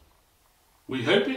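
A man starts speaking calmly into a microphone.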